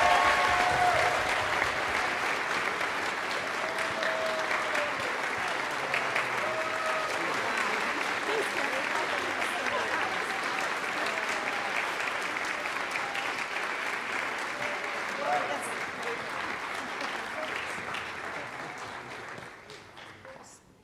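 An audience applauds loudly in a large hall, then the clapping fades away.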